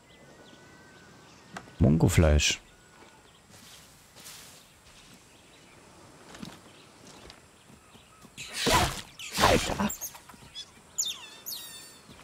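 Leaves rustle as someone pushes through tall plants.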